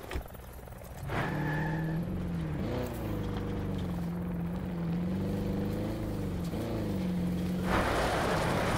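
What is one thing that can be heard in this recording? A car engine runs and revs as the car drives.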